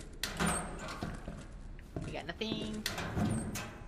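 A metal locker door clanks open.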